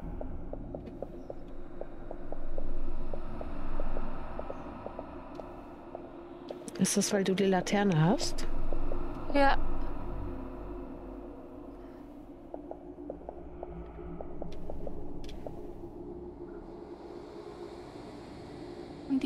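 Footsteps pad softly on a hard floor.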